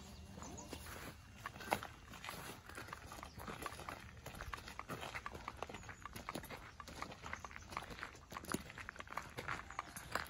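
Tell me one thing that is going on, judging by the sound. Footsteps crunch on a gravel path outdoors.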